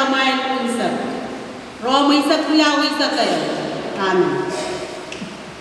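A woman speaks into a microphone over loudspeakers in an echoing hall.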